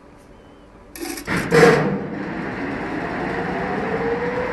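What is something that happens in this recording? A machine starts up and hums steadily, slowly rising in pitch.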